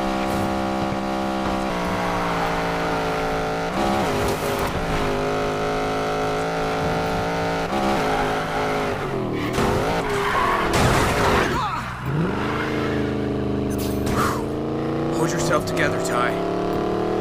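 A race car engine roars at high speed, shifting gears.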